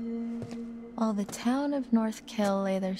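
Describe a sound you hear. A young woman sings softly and slowly.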